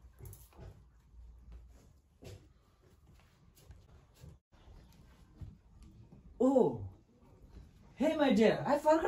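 Bare feet pad softly on a floor.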